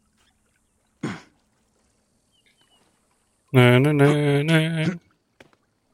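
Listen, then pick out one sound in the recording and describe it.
Hands grip and scrape against rock while climbing.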